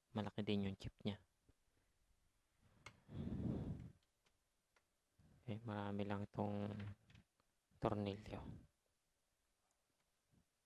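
Light clicks and taps come from hands handling a hard plastic part.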